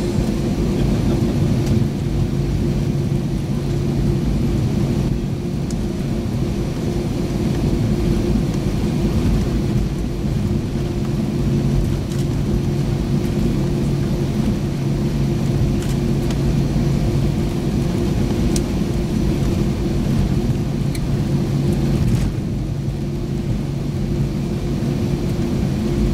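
Jet engines hum and roar steadily from inside an airliner cabin.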